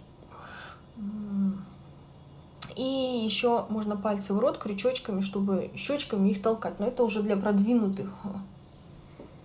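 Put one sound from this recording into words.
A woman talks calmly and close to a phone's microphone.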